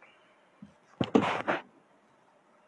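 Papers rustle close to a microphone.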